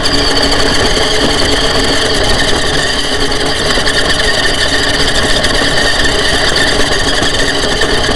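Small tyres crunch over gravel.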